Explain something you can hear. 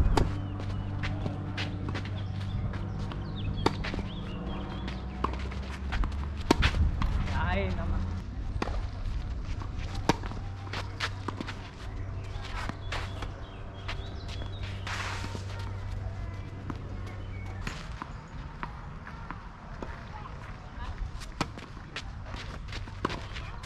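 Tennis balls bounce on a clay court.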